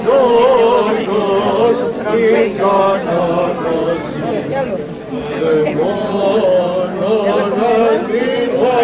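A crowd of men and women sings a slow chant together.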